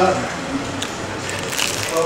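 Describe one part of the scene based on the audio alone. A man chews food with his mouth open.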